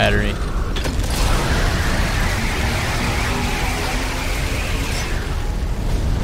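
A weapon hisses and crackles as it fires.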